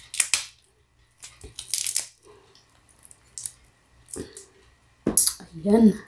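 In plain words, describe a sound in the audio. Shells crack and crunch as a woman breaks apart seafood.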